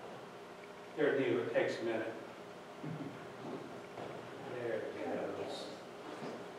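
A man speaks softly nearby.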